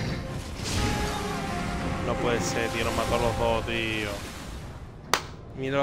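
Crystals shatter and blades clash in a loud, fierce fight.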